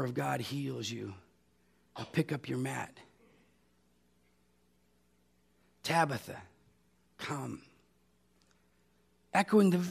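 A middle-aged man speaks calmly through a microphone, with pauses.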